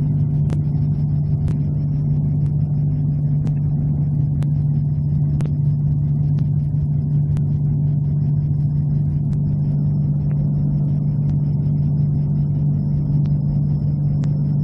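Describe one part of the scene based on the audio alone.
A propeller engine drones steadily and loudly up close.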